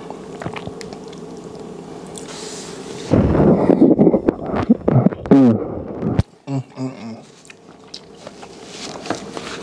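A man chews and slurps food loudly close to a microphone.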